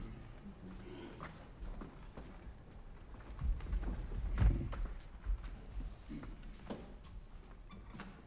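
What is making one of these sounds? A wheeled cart rolls and rattles across a wooden floor.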